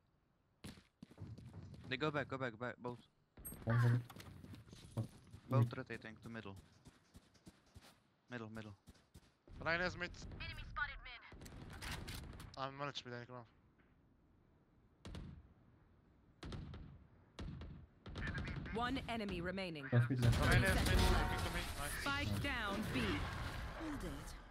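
A young man talks into a close microphone.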